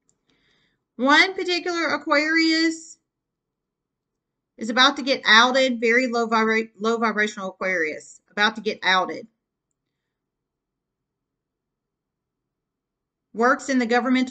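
A woman speaks calmly and close to the microphone, with pauses between phrases.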